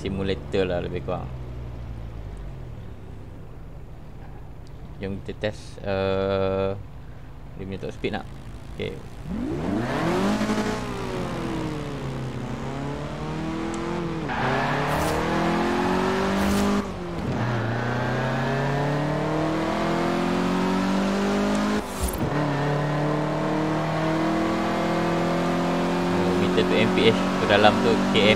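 A car engine idles, then revs hard and climbs through the gears.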